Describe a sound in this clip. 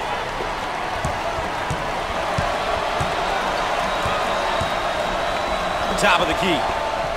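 A basketball bounces on a hardwood floor in a steady dribble.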